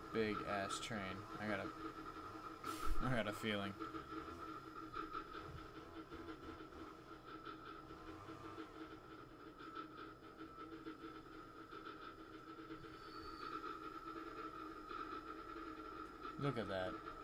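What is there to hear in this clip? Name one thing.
A steam locomotive chugs steadily along the tracks.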